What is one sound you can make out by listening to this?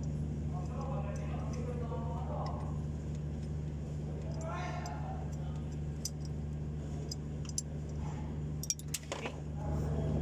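A metal tool clinks against engine parts.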